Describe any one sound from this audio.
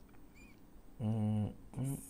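A man speaks briefly and clearly, close by.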